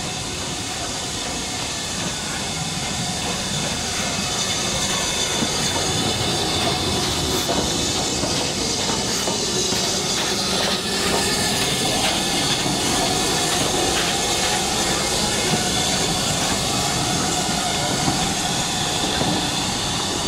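Steam chuffs from a locomotive's chimney.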